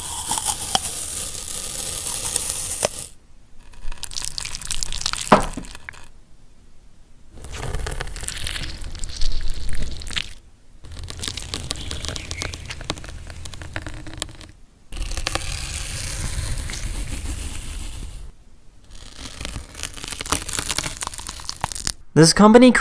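Crisp bites crunch into juicy fruit, again and again.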